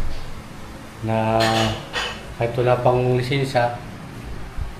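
A middle-aged man speaks casually close by.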